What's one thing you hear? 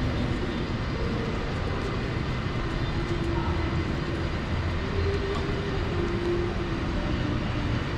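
Pedestrians' footsteps tap on the pavement.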